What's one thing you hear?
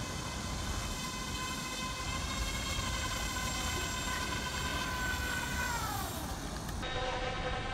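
A small electric motor whines steadily and then drops in pitch.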